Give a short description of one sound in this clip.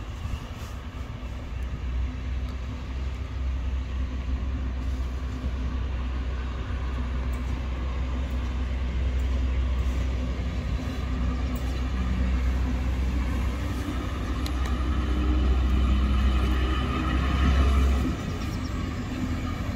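A train rumbles slowly past along the tracks.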